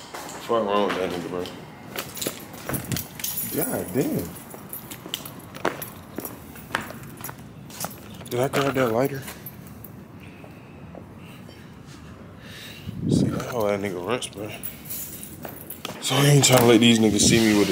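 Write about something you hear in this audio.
A young man talks close to the microphone, casually and in bursts.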